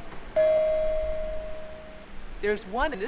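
A steady electronic chime rings.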